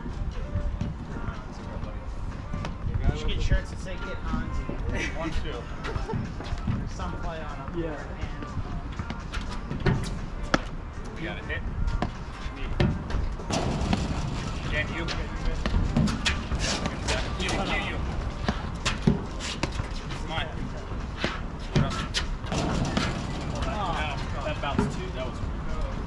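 Paddles strike a ball with sharp pops, back and forth.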